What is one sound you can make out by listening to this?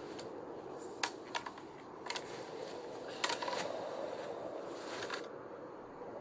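A rifle clicks and rattles as a soldier raises it.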